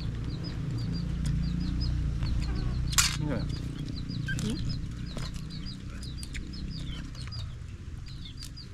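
Crab shells crack and snap between fingers.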